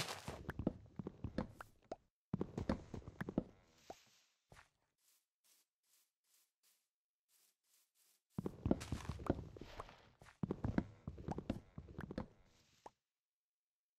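An axe chops wood with repeated dull knocks.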